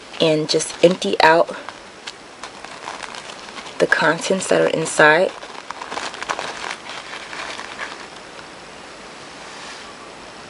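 Paper rustles and crinkles softly as it is handled.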